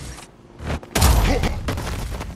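A heavy blow lands with a thud.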